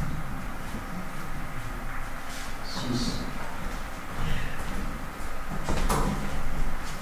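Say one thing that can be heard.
Billiard balls knock against each other.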